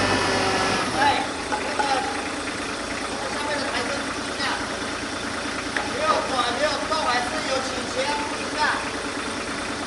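Metal clanks and knocks as a heavy load shifts.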